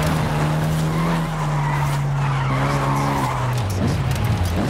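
Tyres squeal as a car slides around a bend.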